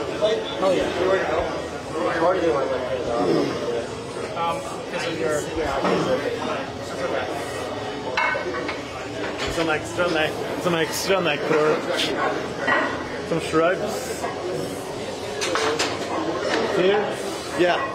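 Dumbbells clank against a metal rack.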